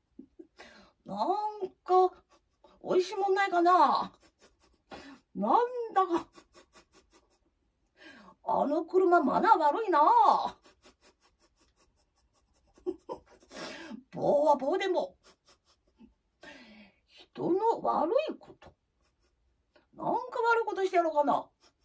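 A young girl sings in short phrases close by.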